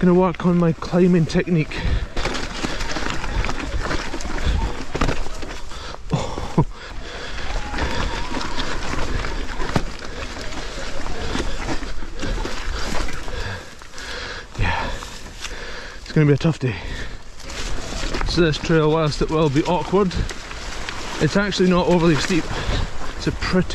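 Bicycle tyres crunch and rumble over a rocky dirt trail.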